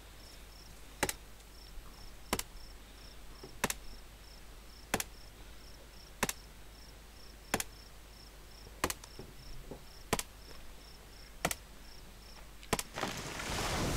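An axe chops into a tree trunk with steady, regular blows.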